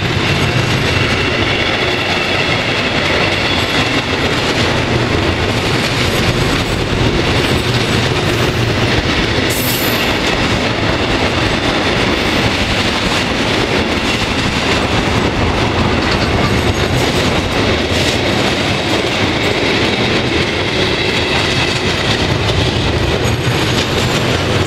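A freight train rumbles past close by, wheels clattering on the rails.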